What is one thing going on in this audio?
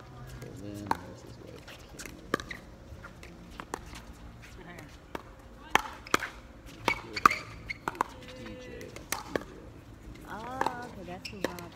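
Paddles smack a plastic ball back and forth in quick rallies outdoors.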